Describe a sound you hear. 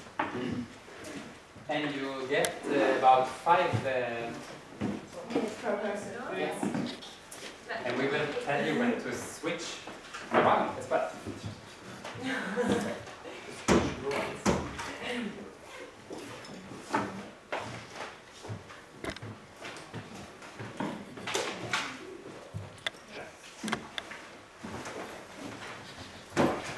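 A young man speaks calmly into a microphone in a large room.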